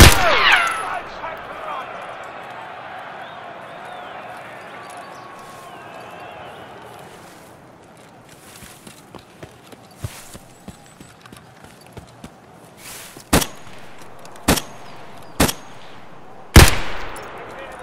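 A rifle fires loud single shots with echoes.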